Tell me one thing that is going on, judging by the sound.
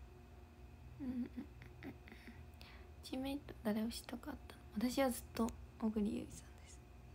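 A young woman speaks softly and close to a microphone, in short phrases.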